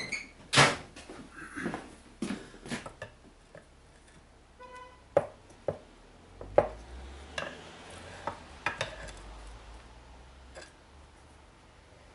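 Metal tools clink and clatter on a workbench.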